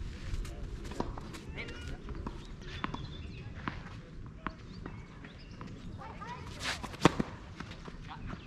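A tennis ball bounces on the court several times.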